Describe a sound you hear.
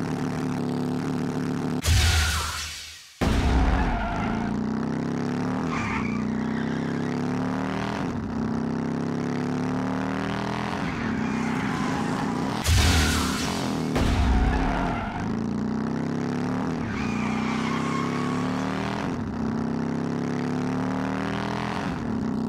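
A small truck's engine hums and revs as it races along.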